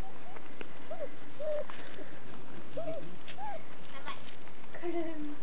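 Puppies whimper and yelp in short, high squeaks.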